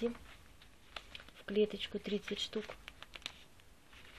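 Paper pages rustle as a notebook cover is lifted.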